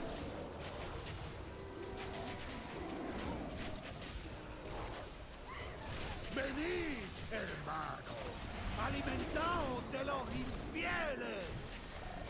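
Fantasy spell effects crackle and whoosh during a battle.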